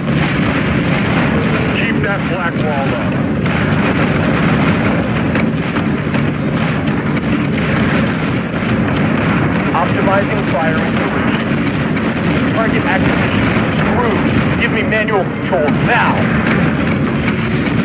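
Explosions boom and rumble in a dense barrage.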